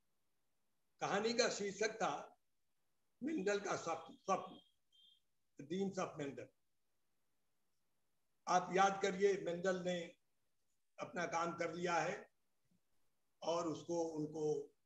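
An elderly man speaks slowly in phrases with pauses, heard through an online call.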